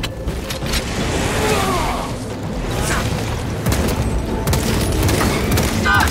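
A chainsword revs and grinds through flesh.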